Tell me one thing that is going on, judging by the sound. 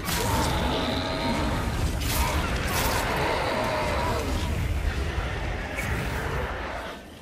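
Magical blasts whoosh and crackle loudly.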